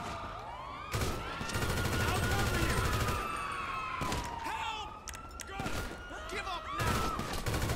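A gun fires a burst of shots at a glass door.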